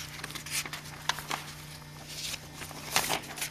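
Paper rustles as pages are turned by hand.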